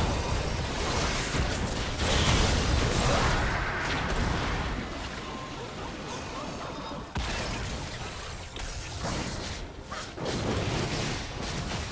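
Magic spells whoosh and crackle in a fast fantasy battle.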